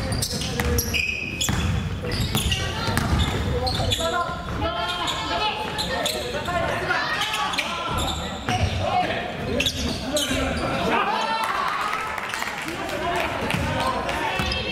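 Young men shout and call out to each other across the court.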